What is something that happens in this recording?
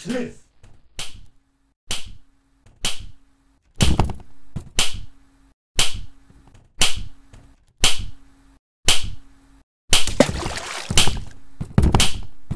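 Sharp slaps ring out at a steady pace, growing louder as they come nearer.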